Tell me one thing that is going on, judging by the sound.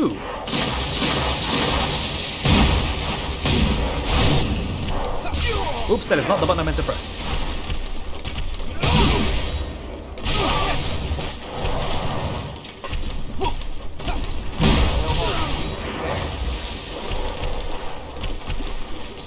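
Heavy blades clang and slash in a fast fight.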